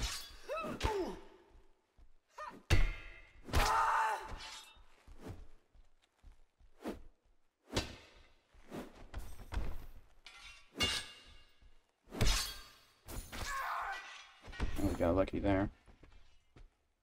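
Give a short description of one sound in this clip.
Blades clash and strike in a sharp, echoing fight.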